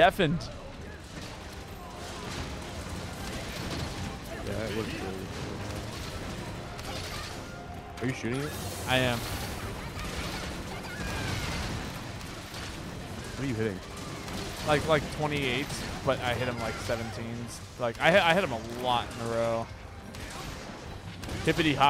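Gunfire and impacts crackle from a video game.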